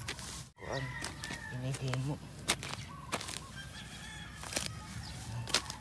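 A small hand tool scrapes and digs into dry soil close by.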